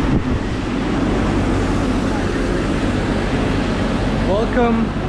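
A busy crowd chatters and murmurs all around outdoors.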